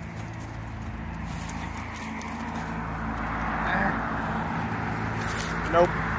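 A chain-link fence rattles and creaks as someone climbs over it.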